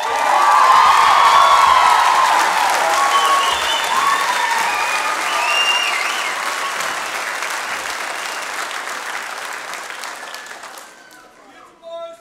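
A large audience cheers and applauds loudly in an echoing hall, then fades away.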